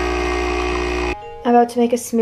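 A coffee machine hums loudly as it pours.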